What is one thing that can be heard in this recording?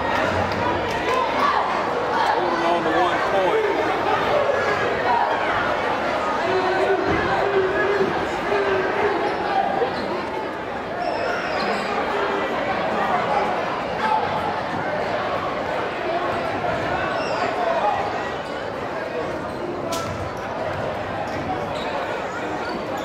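A crowd chatters and calls out throughout a large echoing gym.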